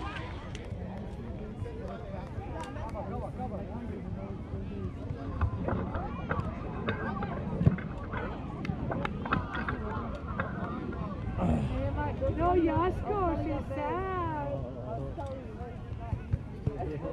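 Spectators chatter and call out outdoors.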